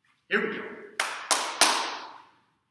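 A man claps his hands sharply a few times.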